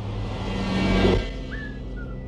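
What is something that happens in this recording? A car passes by.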